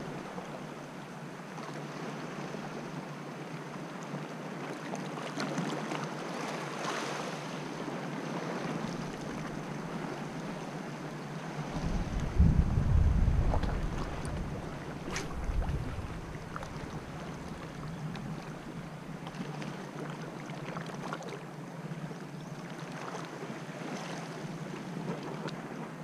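Small waves lap and splash gently against rocks.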